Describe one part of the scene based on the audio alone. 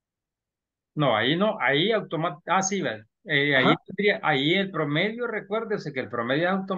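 A man speaks calmly, heard through an online call.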